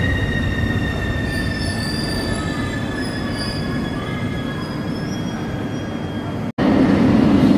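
A metro train's motors whine as it pulls out of a station.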